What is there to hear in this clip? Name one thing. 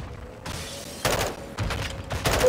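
A rifle fires several sharp shots close by.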